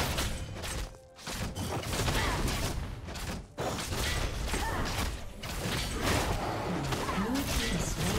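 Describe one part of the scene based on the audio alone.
Video game combat effects clash, zap and crackle in quick bursts.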